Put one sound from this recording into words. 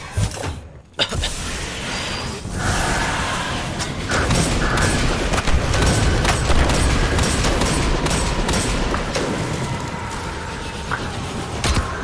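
Gunfire crackles and energy blasts roar in a game.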